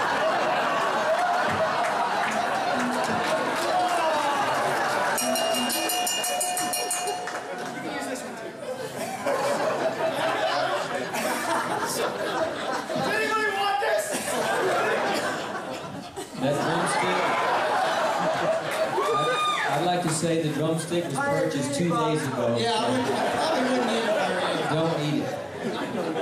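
A fiddle plays along.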